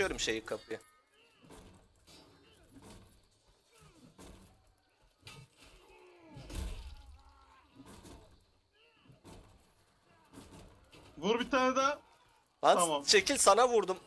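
A heavy hammer repeatedly strikes a wooden cage.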